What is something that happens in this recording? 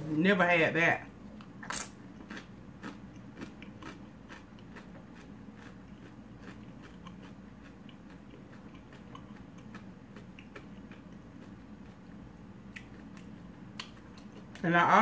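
A woman crunches a tortilla chip close to the microphone.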